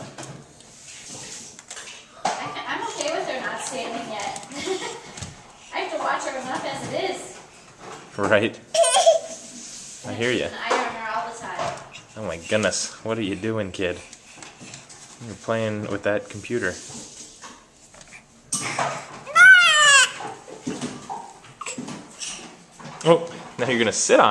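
A baby's hands pat on a wooden floor while crawling.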